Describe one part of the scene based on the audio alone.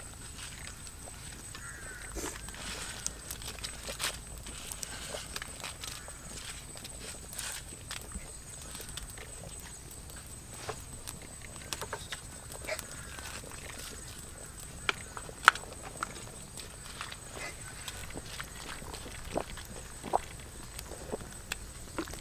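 A pot of stew simmers and bubbles steadily over a fire.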